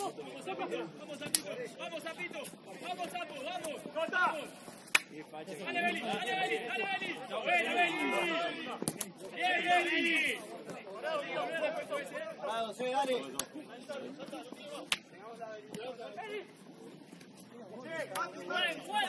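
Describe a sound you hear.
Young men shout and call to each other across an open outdoor pitch.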